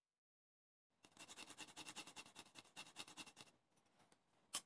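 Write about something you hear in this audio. A hand grater scrapes garlic.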